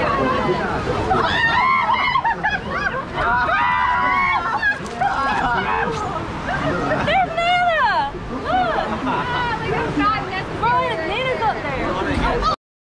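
Rushing water splashes around a raft.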